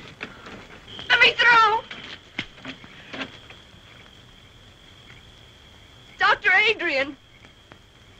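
A young woman cries out loudly with emotion.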